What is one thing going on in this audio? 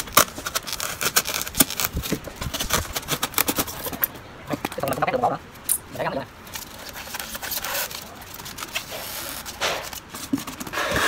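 Cardboard scrapes and crackles as it is cut by hand.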